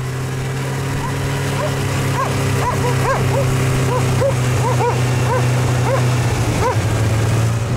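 Dogs yelp excitedly nearby.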